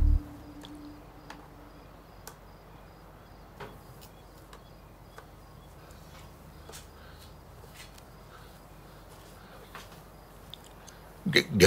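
A wrench clicks and knocks against metal.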